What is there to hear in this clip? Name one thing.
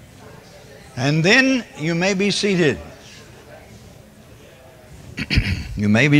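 An elderly man speaks through a microphone in a large echoing hall.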